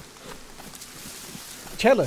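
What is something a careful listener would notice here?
Leaves rustle against a passing body.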